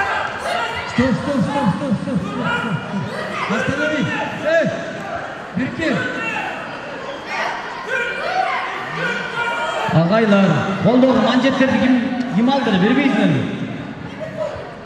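Young voices shout loudly.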